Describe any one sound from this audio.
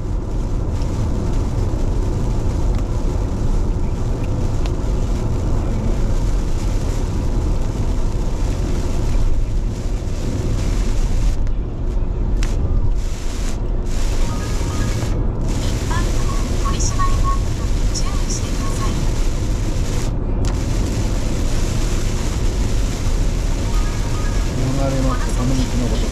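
A car engine hums steadily as it drives along a wet road.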